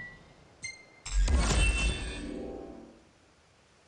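A short bright jingle plays and fades.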